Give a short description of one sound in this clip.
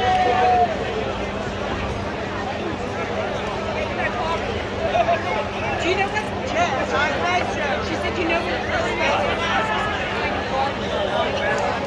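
A crowd of people chatters and talks loudly all around.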